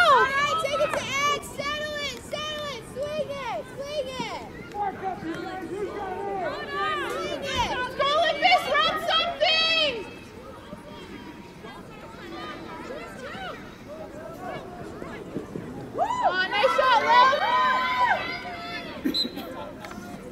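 Young women shout and call to each other outdoors.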